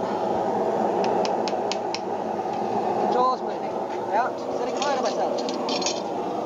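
A hammer strikes hot metal on an anvil with sharp ringing clangs.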